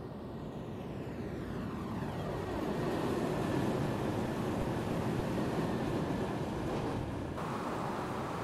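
An electric train approaches and rushes past close by, with a rising roar.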